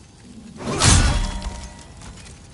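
A sword strikes with a loud clash.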